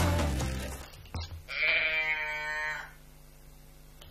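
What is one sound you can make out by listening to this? Wood knocks lightly against a wooden shelf.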